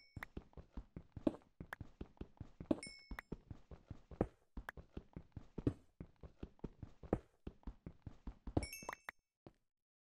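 Rapid pickaxe blows chip and crack stone blocks.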